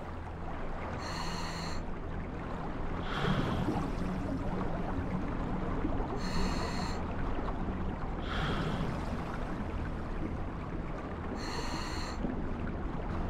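A diver breathes in through a regulator with a hiss every few seconds.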